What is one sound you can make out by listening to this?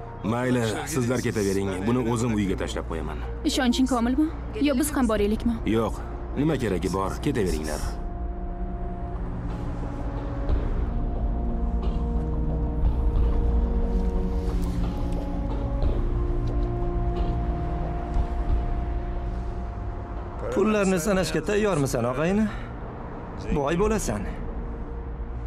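A middle-aged man speaks close by in a tense, low voice.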